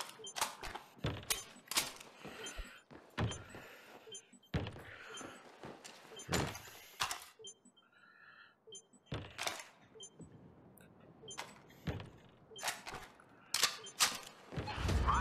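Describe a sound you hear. Metal parts of a submachine gun click and clack as it is handled.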